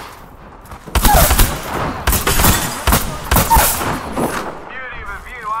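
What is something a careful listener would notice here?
Video game gunfire bursts rapidly.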